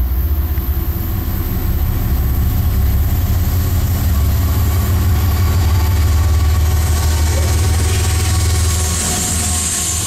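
A locomotive engine rumbles deeply as a train approaches and passes close by.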